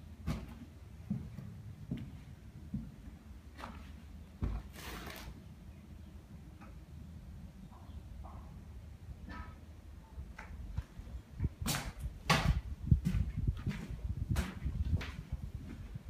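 Footsteps thud on wooden floorboards in an empty, echoing room.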